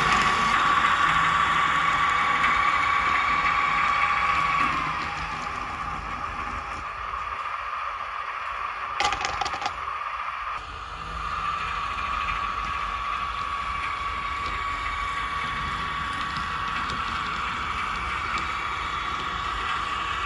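A model diesel shunting locomotive's sound decoder hums with a steady engine drone.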